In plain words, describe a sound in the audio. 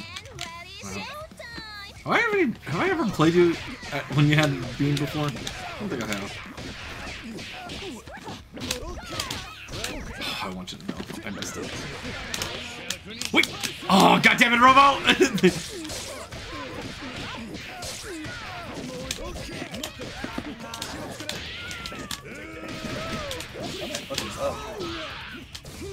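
Punches and kicks land with sharp smacks and thuds.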